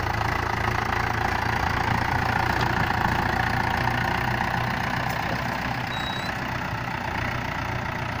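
Muddy water splashes and churns under the tractor's wheels.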